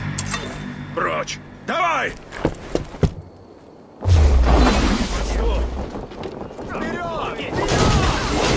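A man shouts.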